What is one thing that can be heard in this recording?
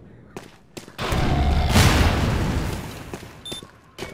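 A grenade explodes with a loud roar.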